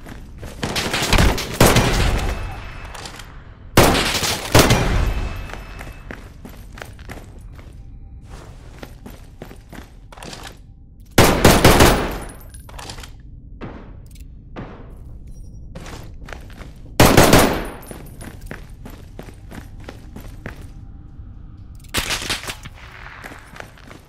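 Rifle shots bang loudly, each followed by a short echoing ring.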